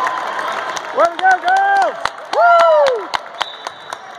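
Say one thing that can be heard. A referee's whistle blows in short shrill blasts in an echoing gym.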